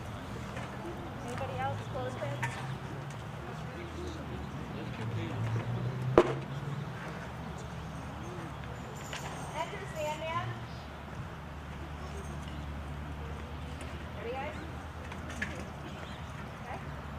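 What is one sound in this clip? A woman speaks outdoors, a little way off.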